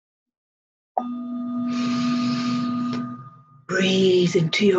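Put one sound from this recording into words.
A singing bowl rings with a steady, humming tone.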